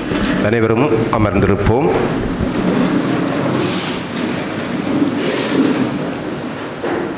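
A man speaks steadily through a microphone in an echoing hall.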